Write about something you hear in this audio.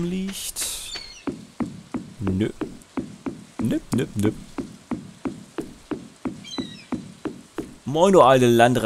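Footsteps tap quickly on wooden boards.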